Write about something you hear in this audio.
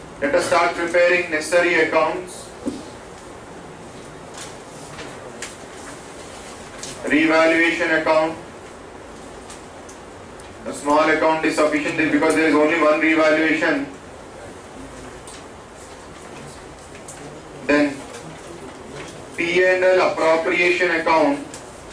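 A man speaks calmly and clearly, close by, in short bursts with pauses.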